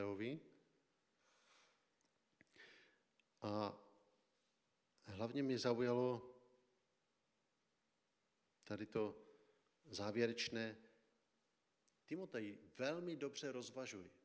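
A man speaks calmly into a microphone, in a room with some echo, pausing between phrases.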